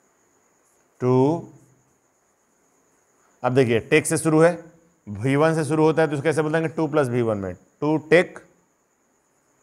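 A middle-aged man speaks calmly and clearly, close to the microphone, in short phrases.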